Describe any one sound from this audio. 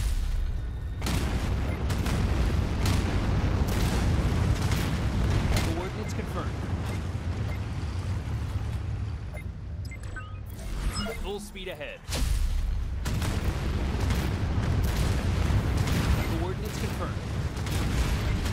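Missiles explode with deep, rumbling booms.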